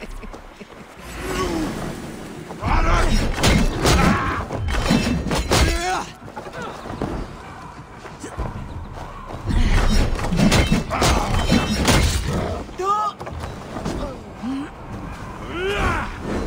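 Blades clash and strike hard again and again in a fierce fight.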